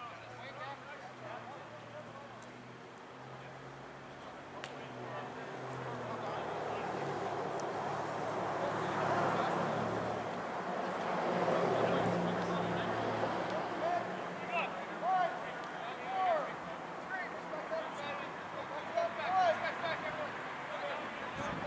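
Young men shout and call out to each other across an open field outdoors.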